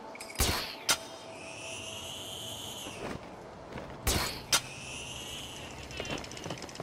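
A line zips through the air with a rising whine.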